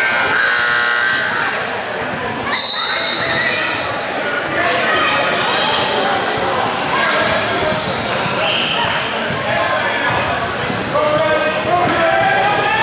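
Players shout and call to each other in a large echoing gym.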